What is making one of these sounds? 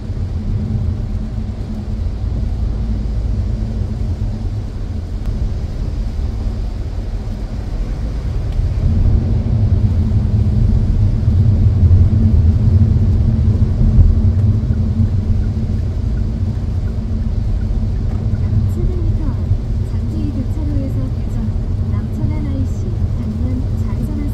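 Rain patters on a car windscreen.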